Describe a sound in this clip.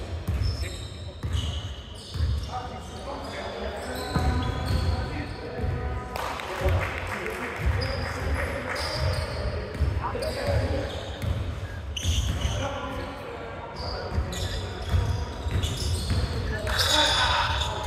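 A basketball bounces on a wooden court in an echoing hall.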